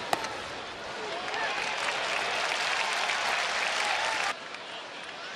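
A large crowd cheers loudly, then breaks off.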